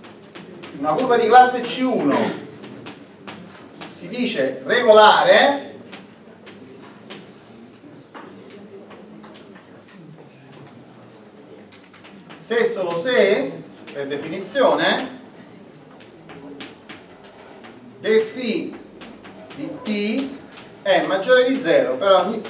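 An older man speaks calmly, pausing often.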